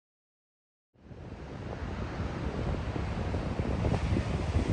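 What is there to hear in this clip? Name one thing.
Waves wash against a rocky shore below.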